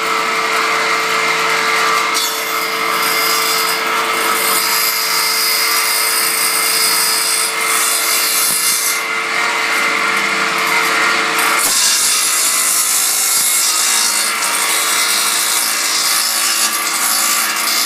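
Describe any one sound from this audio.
A table saw whines loudly as it cuts through wood.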